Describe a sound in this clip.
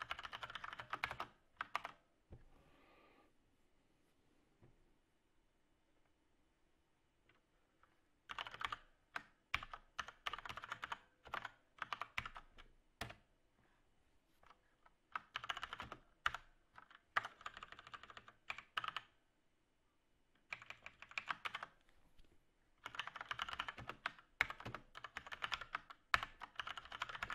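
Keys clatter as someone types on a keyboard.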